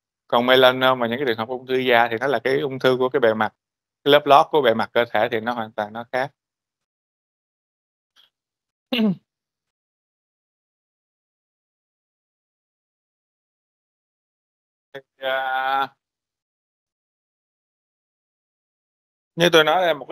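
A man lectures calmly through a microphone, pausing often.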